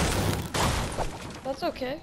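A pickaxe chops repeatedly into wood.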